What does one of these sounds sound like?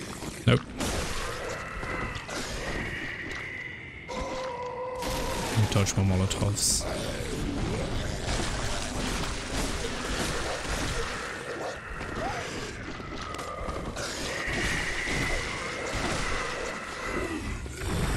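A man talks calmly into a microphone, close by.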